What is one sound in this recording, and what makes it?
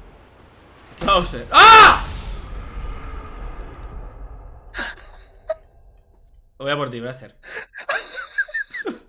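A young man shouts and laughs with animation, close to a microphone.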